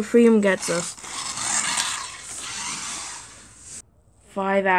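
Plastic toy wheels roll and rattle across a hard surface.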